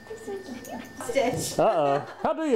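A woman speaks cheerfully, close by.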